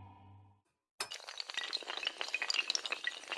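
Dominoes clatter as they topple one after another in a fast chain.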